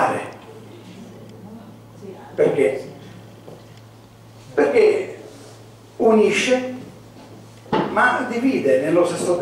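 An elderly man speaks with animation into a microphone in a room with some echo, pausing between bursts of speech.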